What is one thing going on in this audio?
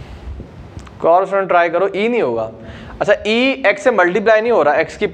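A man speaks clearly and steadily, close to a microphone.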